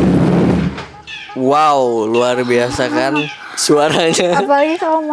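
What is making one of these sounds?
A young woman speaks with animation into a clip-on microphone close by.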